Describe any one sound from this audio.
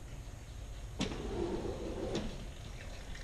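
A glass door bumps and rattles open.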